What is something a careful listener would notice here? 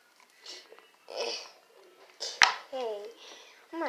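A plastic lid clicks as it is twisted off a jar.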